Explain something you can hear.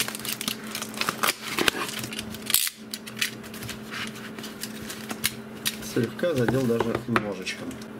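Plastic packaging rustles and crinkles as hands handle it.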